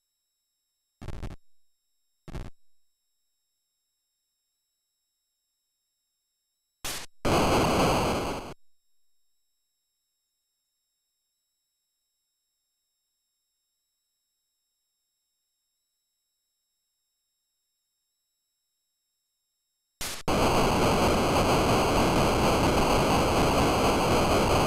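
An Atari 8-bit computer game gives off short bursts of harsh, crackling noise.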